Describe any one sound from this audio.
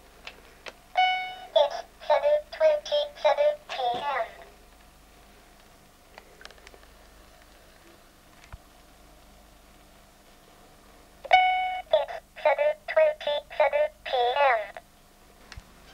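A talking alarm clock announces the time in a synthesized voice from a small loudspeaker.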